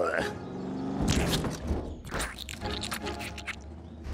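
A monster truck lands hard on dirt with a heavy thud.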